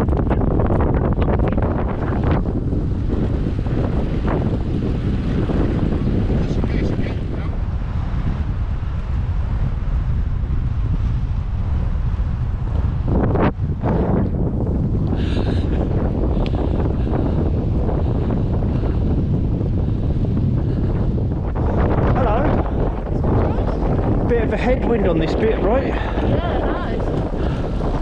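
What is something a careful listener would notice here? Wind buffets loudly and steadily outdoors.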